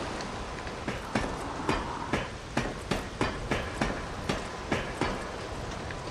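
Hands and feet clank in a steady rhythm on a ladder's rungs.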